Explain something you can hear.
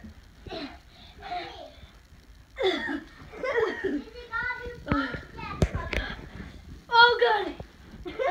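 A young boy talks and grunts with effort close by.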